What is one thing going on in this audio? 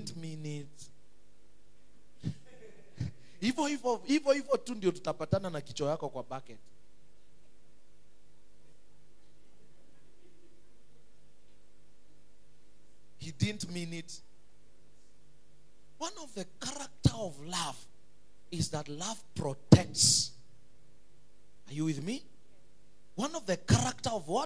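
A man preaches with animation through a microphone over loudspeakers in an echoing room.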